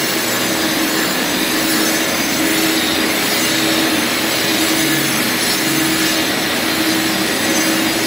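An angle grinder whines loudly as it grinds a concrete floor.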